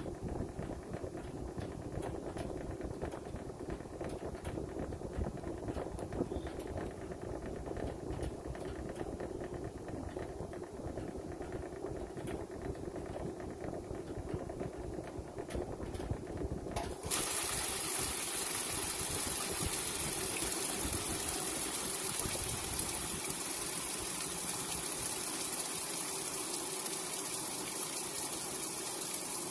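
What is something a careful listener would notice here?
A washing machine drum spins with a low steady rumble.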